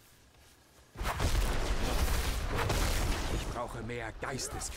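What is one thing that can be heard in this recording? A creature strikes with a loud, crackling magical blast.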